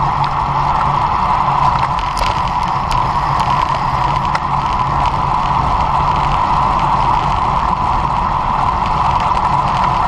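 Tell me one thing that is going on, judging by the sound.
Wind rushes steadily past a microphone outdoors.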